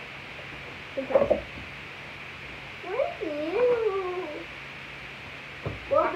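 A second young girl talks close by.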